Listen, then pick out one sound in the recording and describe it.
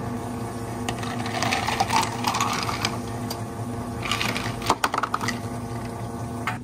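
Ice cubes clatter into a plastic cup.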